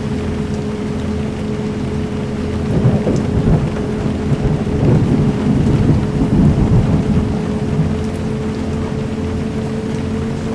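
A bus engine hums steadily at a low pitch.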